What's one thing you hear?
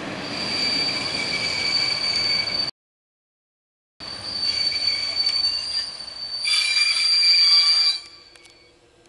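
Train wheels squeal with a steady high whine.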